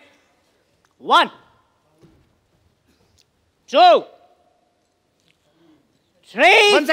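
A man shouts out in short bursts.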